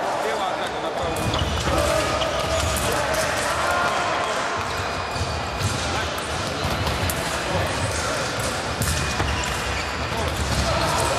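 Fencers' shoes stamp and squeak on a hard floor in a large echoing hall.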